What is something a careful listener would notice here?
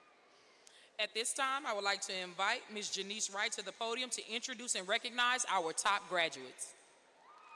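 A second woman speaks into a microphone.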